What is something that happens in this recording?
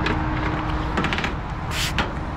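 Footsteps crunch on dry leaves and grass.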